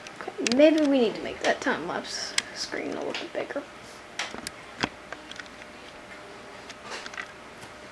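Hands handle and tap a plastic case with light clicks.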